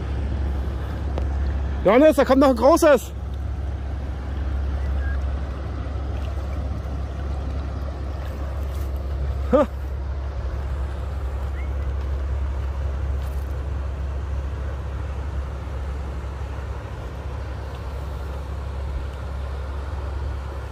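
A large boat's engine rumbles low and steady on the river.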